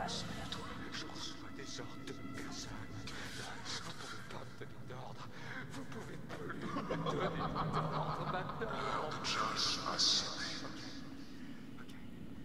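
A young man speaks in a strained, frightened voice, close by.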